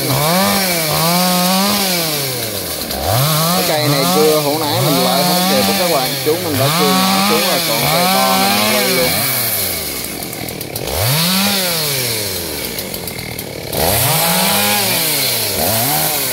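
A chainsaw revs up and down loudly, close by.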